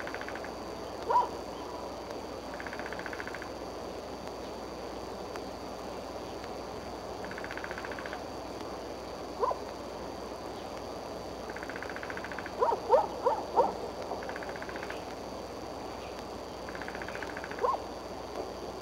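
An eagle gives short, high, chirping calls nearby.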